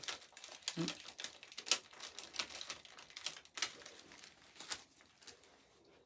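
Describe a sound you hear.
Paper rustles as it is unwrapped.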